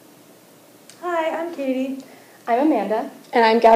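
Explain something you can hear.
A young woman speaks clearly nearby.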